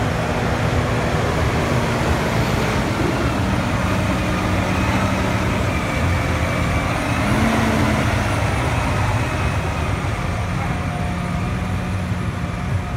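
A large diesel farm tractor engine idles.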